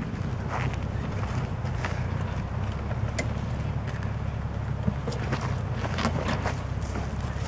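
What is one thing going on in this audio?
Rocks click and knock under the wheels.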